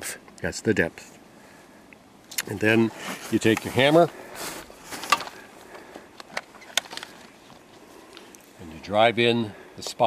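A man speaks calmly close by, in short phrases.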